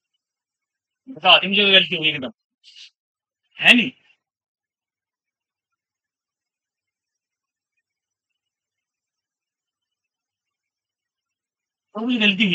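A young man speaks calmly in short bursts.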